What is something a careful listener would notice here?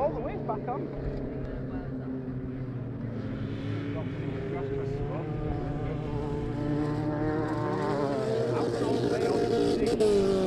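Tyres skid and spin on loose dirt.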